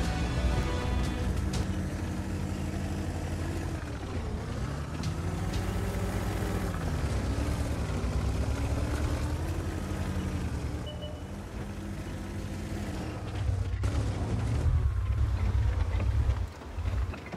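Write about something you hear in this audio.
A heavy tank engine rumbles and revs as the tank drives over rough ground.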